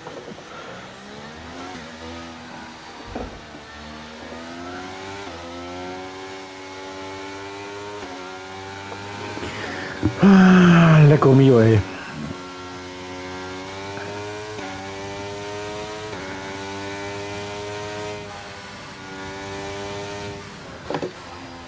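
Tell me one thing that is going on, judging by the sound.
A racing car engine screams, its pitch climbing through the gears and dropping at each shift.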